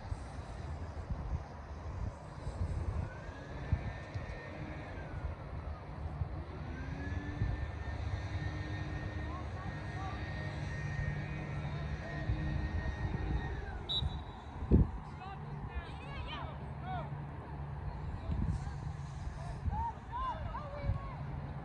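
Young players shout to each other in the distance.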